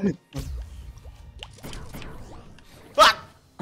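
Water splashes as a small figure dives in.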